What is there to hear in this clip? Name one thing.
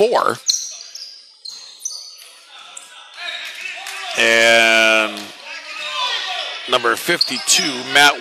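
A crowd of spectators shouts and cheers.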